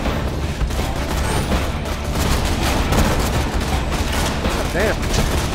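Guns fire in rapid bursts with loud electronic blasts.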